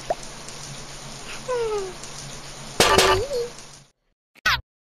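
Water sprays from a shower.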